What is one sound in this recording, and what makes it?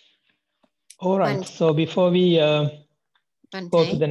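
A man speaks calmly through a microphone on an online call.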